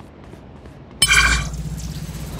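A magical ability bursts with a loud whoosh and shimmering ring.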